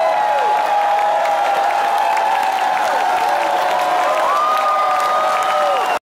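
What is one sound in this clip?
A band plays music live and loud, heard from within the audience.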